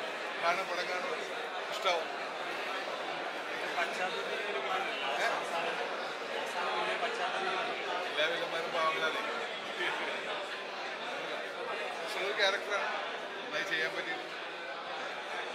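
A middle-aged man speaks with animation into microphones close by.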